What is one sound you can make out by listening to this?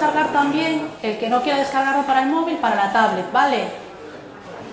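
A woman talks loudly close by, then stops.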